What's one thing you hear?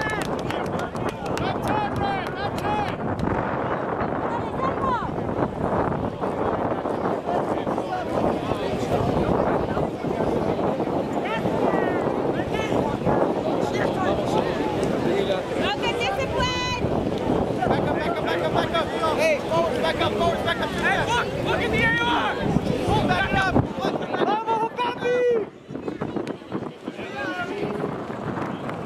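Young men call out to each other across an open field outdoors.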